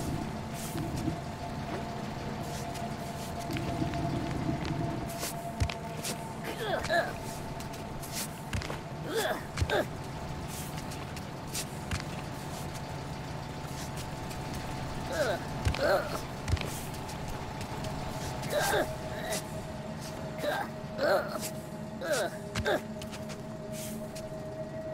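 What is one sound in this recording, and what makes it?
Footsteps tap on stone.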